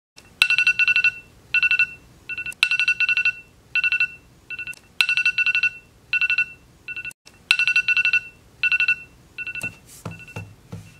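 A phone alarm beeps in quick repeating bursts.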